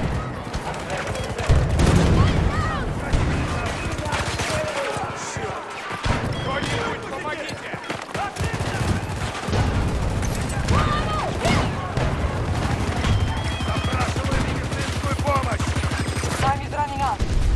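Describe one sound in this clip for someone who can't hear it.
Rifle fire crackles in rapid bursts at close range.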